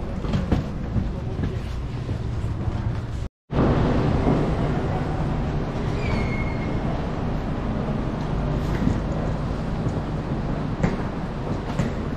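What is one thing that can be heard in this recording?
Suitcase wheels roll and clatter over the ground.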